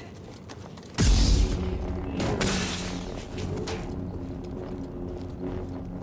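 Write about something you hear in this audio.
A lightsaber ignites with a loud burst and hums steadily.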